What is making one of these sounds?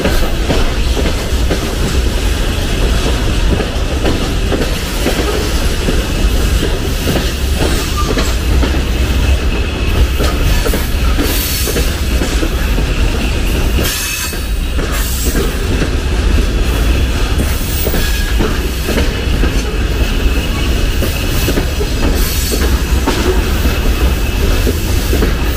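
A freight train rumbles past close by, its wheels clattering over the rails.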